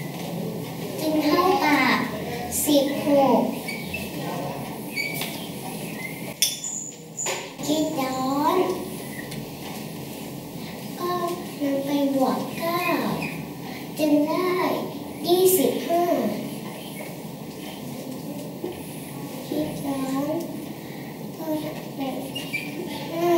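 A marker squeaks and taps against a whiteboard.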